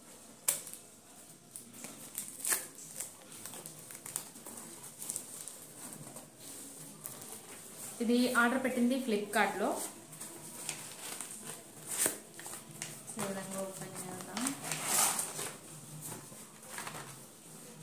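Paper and cardboard rustle and tear as a package is opened.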